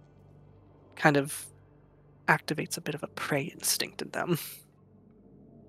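A man speaks with animation over an online call.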